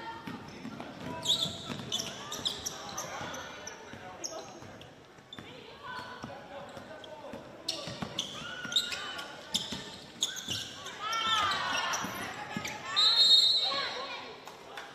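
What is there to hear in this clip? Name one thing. Young women call out to each other across the court.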